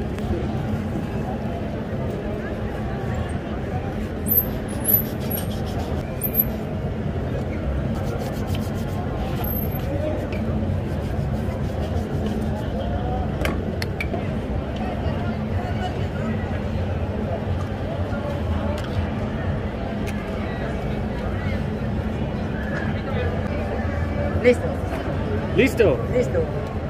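Outdoors, a busy crowd murmurs in the background.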